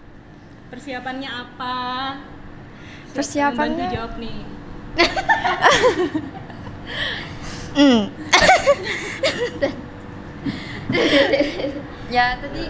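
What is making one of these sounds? A woman speaks into a microphone, asking questions with animation.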